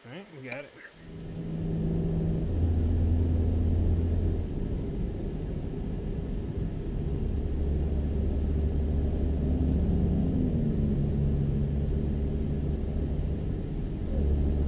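A truck engine drones steadily as the truck drives along a road.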